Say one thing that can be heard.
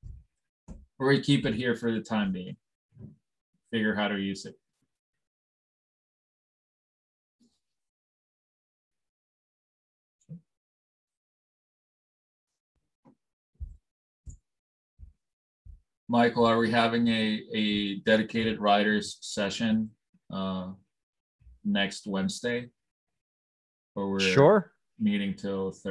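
A man talks calmly through a headset microphone, in bursts with pauses.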